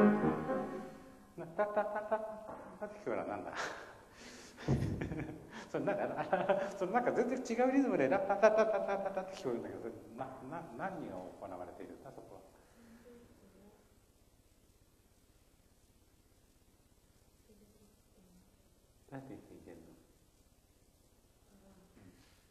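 A piano plays short passages.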